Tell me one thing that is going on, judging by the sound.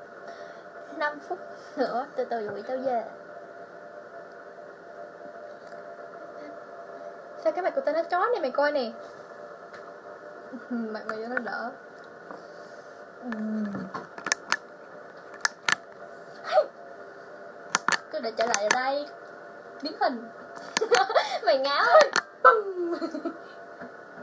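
A young girl talks in short bursts close to a phone microphone.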